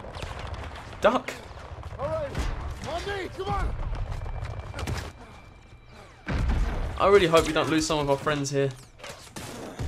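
A man shouts urgently, close by.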